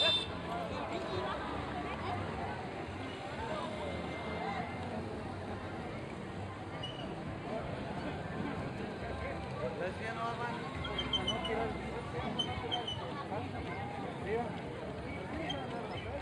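A crowd of men and women talk and call out all around outdoors.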